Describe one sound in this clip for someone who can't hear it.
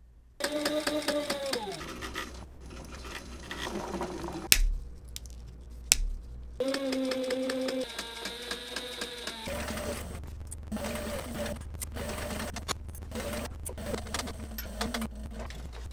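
A sewing machine stitches through leather with a rapid clatter.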